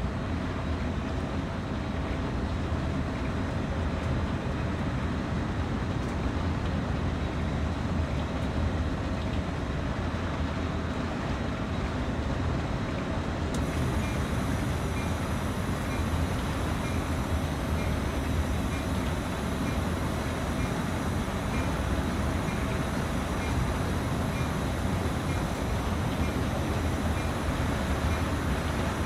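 A diesel locomotive engine rumbles steadily from inside the cab.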